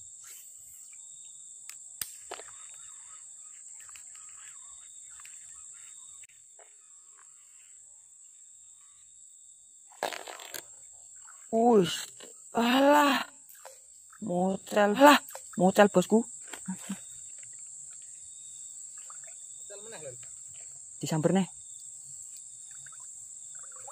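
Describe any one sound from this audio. A fishing reel clicks as its line is wound in.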